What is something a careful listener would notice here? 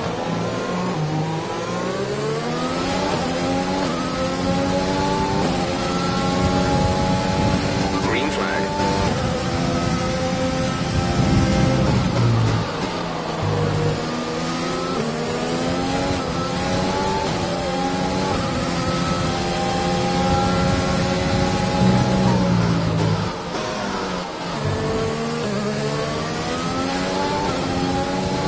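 A racing car engine screams, rising in pitch through the gears and dropping as it brakes.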